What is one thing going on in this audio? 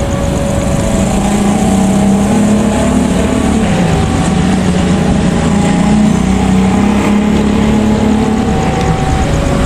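A diesel locomotive engine rumbles in the distance.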